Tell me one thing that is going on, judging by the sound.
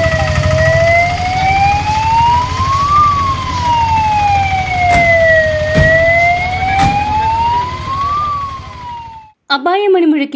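A heavy truck engine rumbles as the truck drives past.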